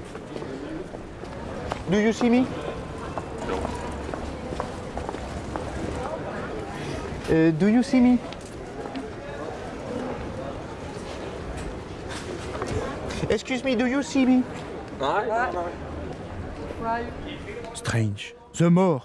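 Street hubbub murmurs steadily.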